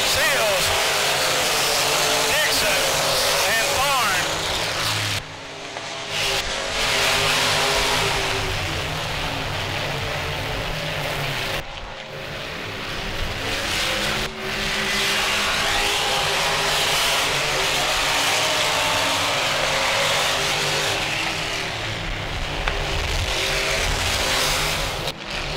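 Race car engines roar loudly.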